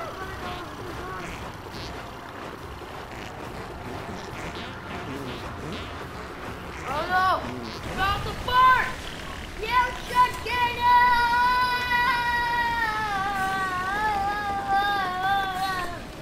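A whirling whoosh spins round and round.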